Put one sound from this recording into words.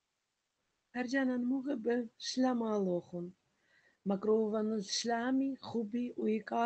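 A woman speaks warmly and clearly into a microphone.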